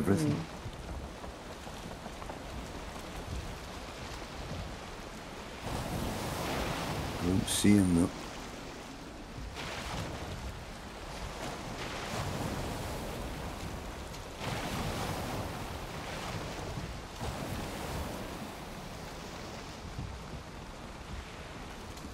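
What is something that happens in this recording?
Wind roars in gusts.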